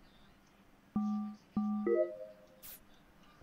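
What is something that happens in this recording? A short electronic chime plays as a task completes.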